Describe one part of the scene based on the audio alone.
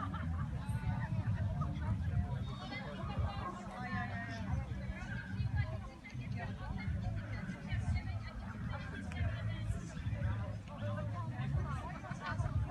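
Men and women chat in the distance.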